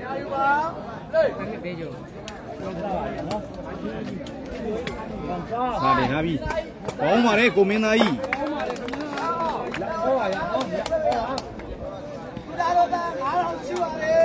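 A large crowd of young men chatters and shouts outdoors.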